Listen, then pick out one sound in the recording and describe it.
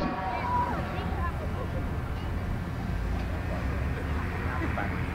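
A crowd chatters in the distance.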